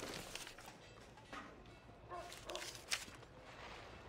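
A card is flipped over with a light paper rustle.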